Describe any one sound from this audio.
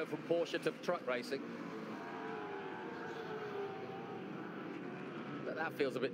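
Racing car engines roar at high revs as the cars speed past.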